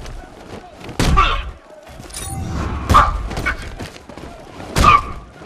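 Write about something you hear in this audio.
Heavy punches land with loud, sharp thuds.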